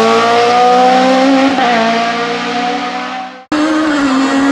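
A rally car engine revs hard as the car speeds away and fades.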